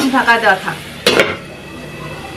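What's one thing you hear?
A metal lid clanks down onto a pan.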